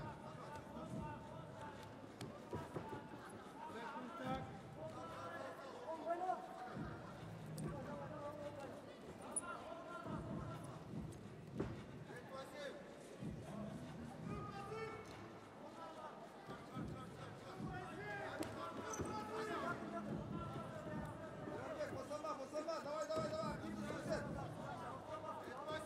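Wrestlers' feet thud and scuff on a mat.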